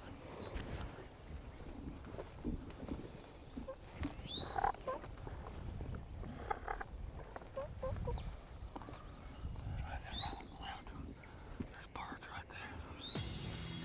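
A man whispers quietly close by.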